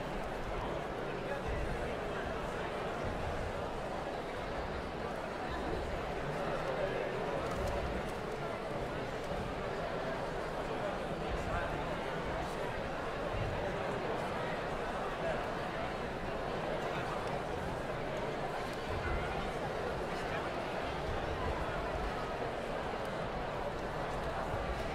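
A large audience murmurs and chatters in a big echoing concert hall.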